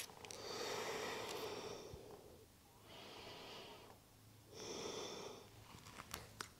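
A woman breathes slowly and deeply.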